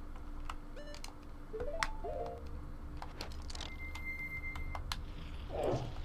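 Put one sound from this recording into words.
A game menu cursor blips as a selection is made.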